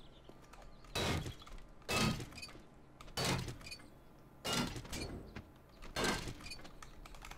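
A wrench bangs against scrap metal in repeated blows.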